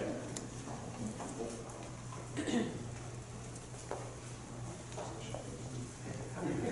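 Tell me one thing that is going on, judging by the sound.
An elderly man speaks to a group, heard at a distance in a room.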